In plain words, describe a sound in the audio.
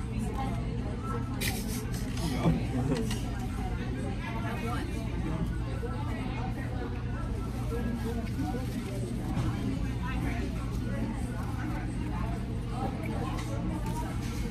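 A young man chews food and smacks his lips.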